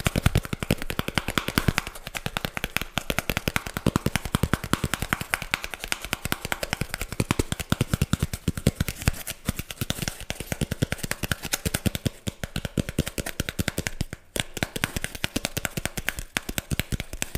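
A man makes soft mouth sounds close to a microphone.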